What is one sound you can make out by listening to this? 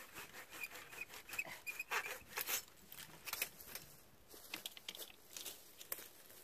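Bare twigs rustle and scrape against each other.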